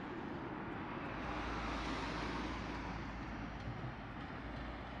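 A small truck drives past on the road.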